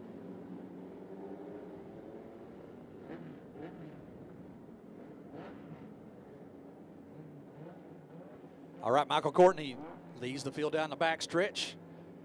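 Race car engines roar together as the cars drive around a dirt track.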